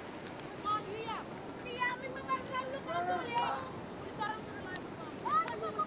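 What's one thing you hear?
A fire crackles as it burns.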